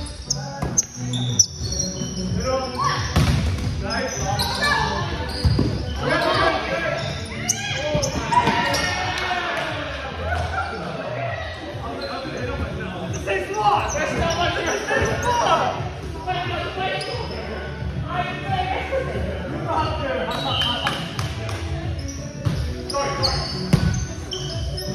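Young men and women call out and talk across a large echoing gym.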